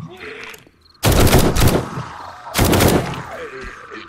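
Automatic gunfire blasts in loud bursts.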